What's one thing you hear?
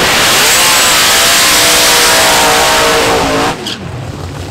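A drag racing car's engine roars loudly as it launches and speeds away.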